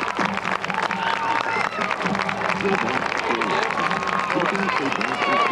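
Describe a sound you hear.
A marching band's horns play.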